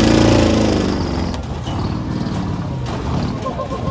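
A monster truck crashes down onto cars with a crunch.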